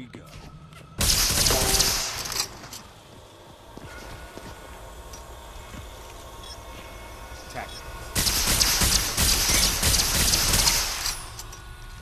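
Energy weapons blast and crackle.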